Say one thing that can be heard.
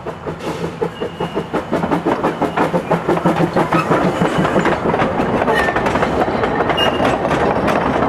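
Train wheels clatter and click over the rail joints.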